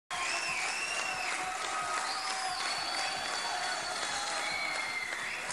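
Audience members whistle shrilly.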